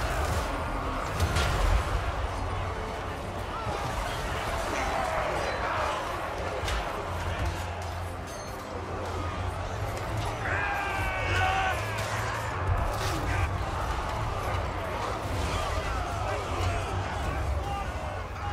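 Weapons clash in a busy battle.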